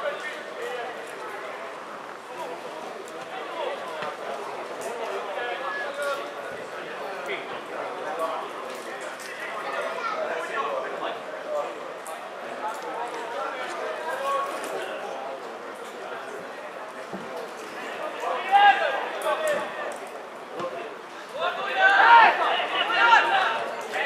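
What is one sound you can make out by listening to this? Players call out to each other across an open pitch.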